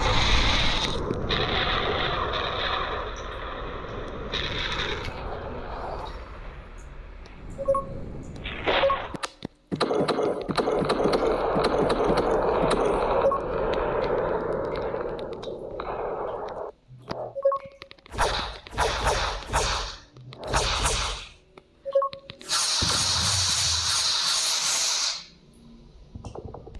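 Explosions rumble and roar in a game.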